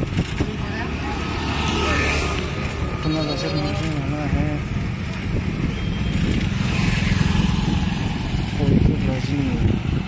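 A motorcycle drives past nearby.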